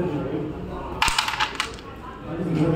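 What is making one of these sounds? A striker cracks sharply into a tight stack of wooden game pieces, scattering them with clacks across a board.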